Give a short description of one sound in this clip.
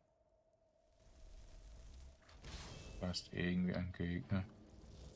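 A magic spell bursts with a loud crackling whoosh.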